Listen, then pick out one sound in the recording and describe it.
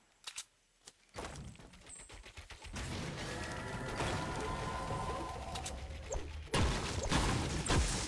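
Wooden building pieces clatter into place.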